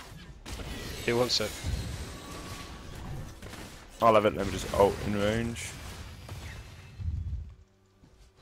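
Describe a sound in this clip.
Magic spells whoosh and crackle in a video game.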